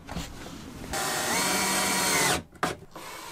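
A cordless drill whirs briefly.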